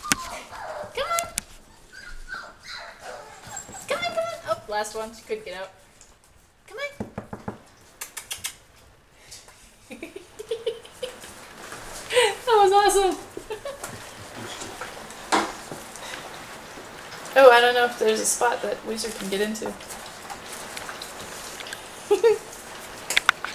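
Puppies whine and yelp close by.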